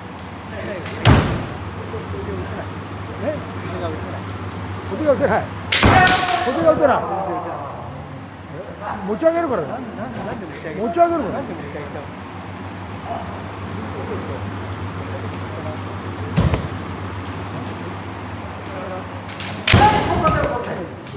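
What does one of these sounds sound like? Bamboo swords clash and strike with sharp cracks in an echoing hall.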